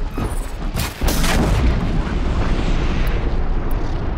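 Electricity crackles and bursts loudly.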